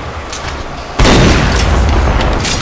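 A gun fires a rapid burst.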